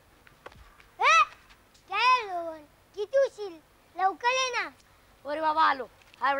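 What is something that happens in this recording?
A boy speaks loudly outdoors.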